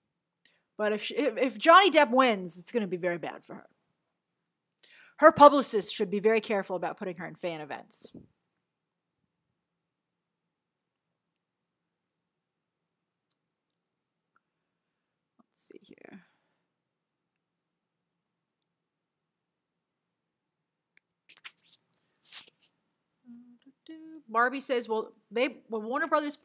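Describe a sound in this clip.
A young woman talks with animation into a close microphone, pausing at times.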